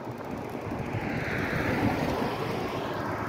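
A van drives past close by with a rising whoosh.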